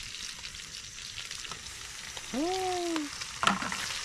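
Tomatoes drop into a metal pot.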